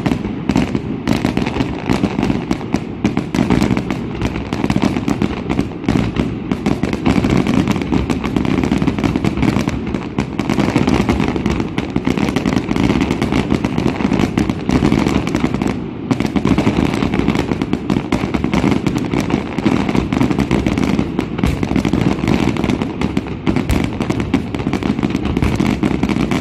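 Fireworks sparkle and crackle as they burn out.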